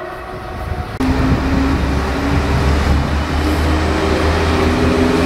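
A diesel train rumbles as it pulls in along the track.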